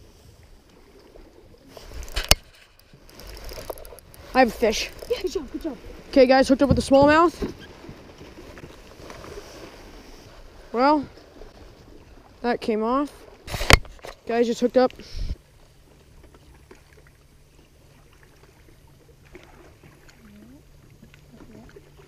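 A fishing reel clicks as its handle turns.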